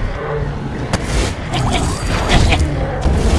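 A heavy creature lunges and strikes with a sharp swoosh and thud.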